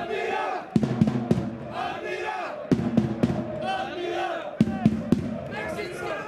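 Players clap and slap hands in celebration.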